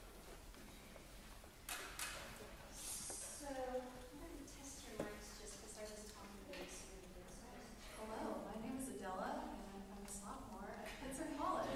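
A jazz band plays in a large echoing hall.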